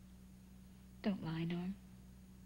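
A woman speaks with emotion up close.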